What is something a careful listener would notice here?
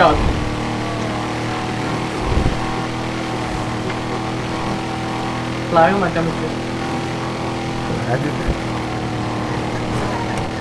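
A heavy truck engine roars steadily.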